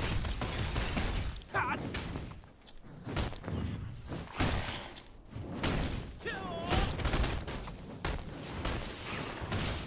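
Sword blows strike a creature with sharp, repeated impacts.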